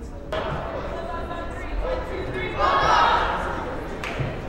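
A group of teenage girls shout a cheer together in an echoing gym.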